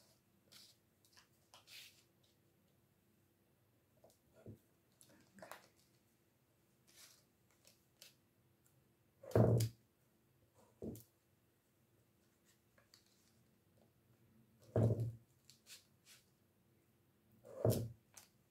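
Thin wax sheets rustle and crinkle as they are handled.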